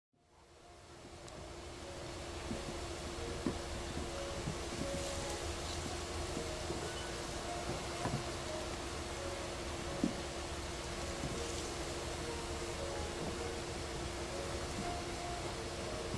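A dog nudges a rubber ball with soft thumps on grass.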